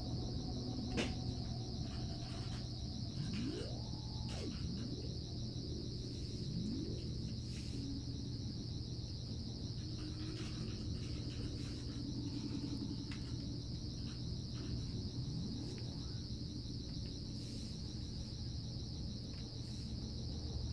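Switches click now and then.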